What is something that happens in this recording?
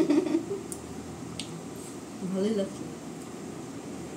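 A young woman chews food.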